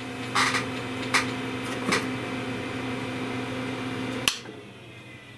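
An old computer hums steadily, then falls quiet.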